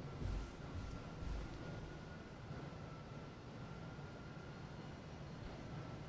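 Footsteps thud softly on a hard floor in a large echoing hall.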